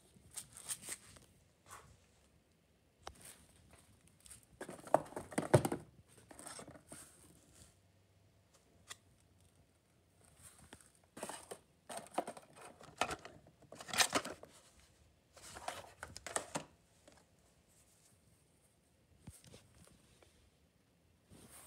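Plastic and cardboard packages rustle and crinkle as hands handle them.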